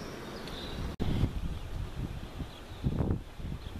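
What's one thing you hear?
Wind gusts loudly against the microphone outdoors.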